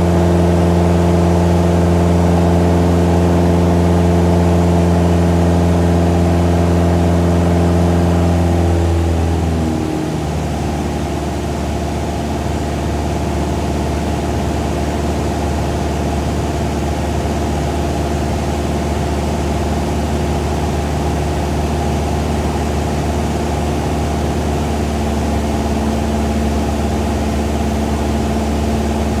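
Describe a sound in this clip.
A small propeller plane's engine drones loudly and steadily from inside the cockpit.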